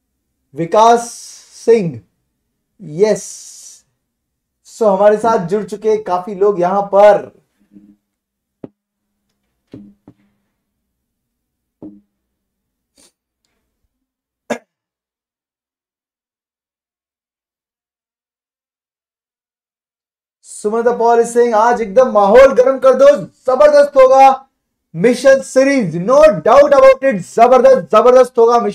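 A man lectures calmly and clearly into a close microphone, pausing now and then.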